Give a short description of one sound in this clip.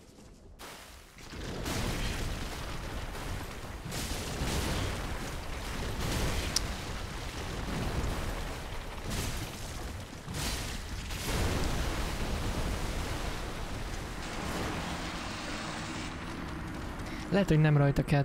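A huge creature stomps and crashes heavily.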